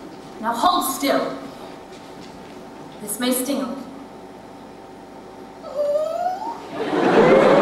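A man speaks theatrically in an echoing hall, heard from a distance.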